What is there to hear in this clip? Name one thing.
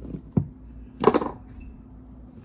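A metal knife clatters down onto a wooden table.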